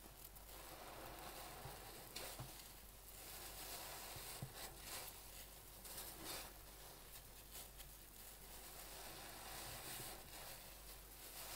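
A soapy sponge squelches wetly as it is squeezed.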